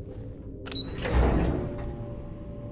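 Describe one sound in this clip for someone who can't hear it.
A heavy metal door slides open with a whoosh.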